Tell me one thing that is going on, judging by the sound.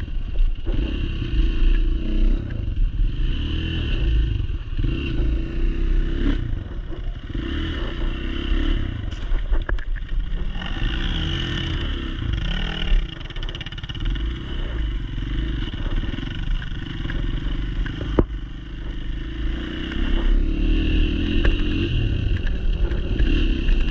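A dirt bike engine revs and roars up close, rising and falling in pitch.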